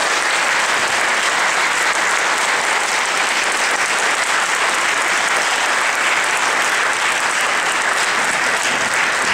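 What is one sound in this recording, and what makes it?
An audience applauds steadily in a large room.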